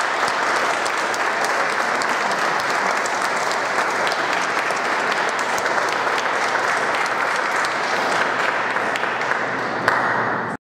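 An audience applauds steadily in a room with some echo.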